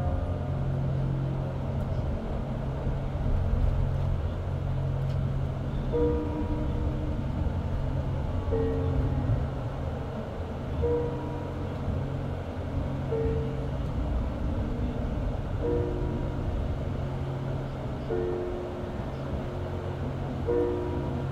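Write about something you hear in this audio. Car tyres rumble steadily on the road from inside a moving car.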